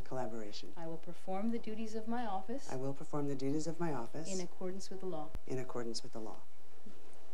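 A woman reads out calmly through a microphone.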